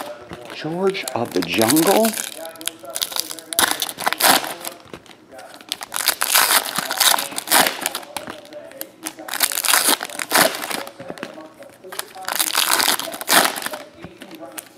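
Foil packs crinkle and rustle as they are handled and stacked.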